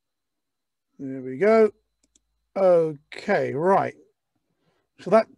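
A man speaks with animation into a close microphone, his voice rising and falling.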